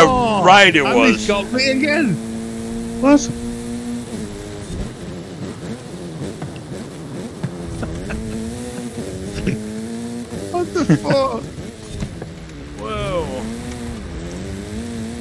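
A car engine roars steadily at high revs, rising and falling as gears change.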